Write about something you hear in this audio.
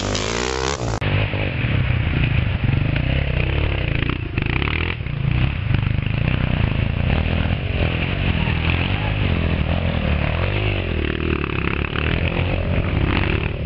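A dirt bike engine roars and revs as it rides along a trail.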